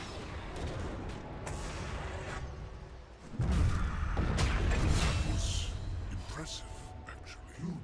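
Game spells whoosh and burst during a fight.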